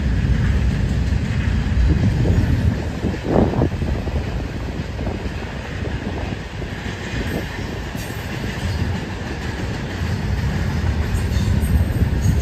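Wind blows outdoors and flaps a flag.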